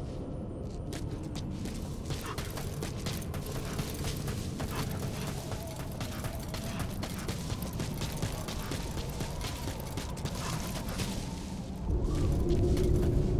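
Footsteps crunch quickly over rough, stony ground.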